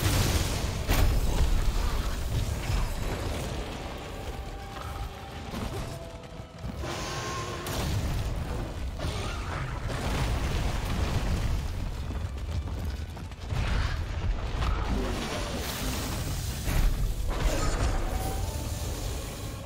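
A huge dragon roars and rumbles deeply.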